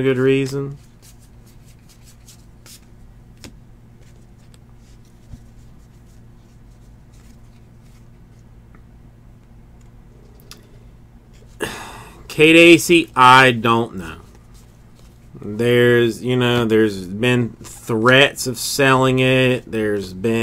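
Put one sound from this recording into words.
Trading cards slide and flick softly against each other in a stack.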